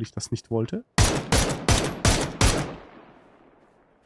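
Rifle shots fire in a quick burst and echo away.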